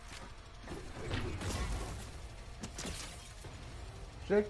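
A rocket launcher fires with a heavy boom.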